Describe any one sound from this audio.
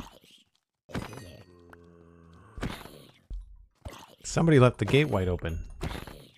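Blows thud against a zombie.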